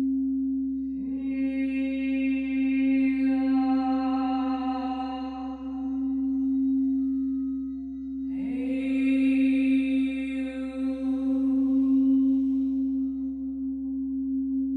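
A crystal singing bowl rings out when struck with a mallet.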